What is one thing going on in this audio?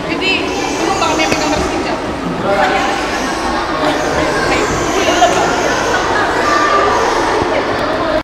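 A crowd of children chatters and shouts in a large echoing hall.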